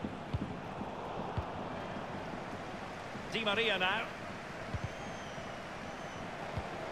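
A football is kicked with dull thumps.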